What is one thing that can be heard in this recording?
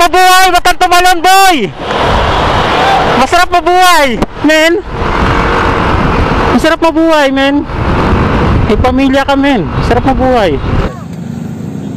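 Wind roars loudly past a moving motorcycle.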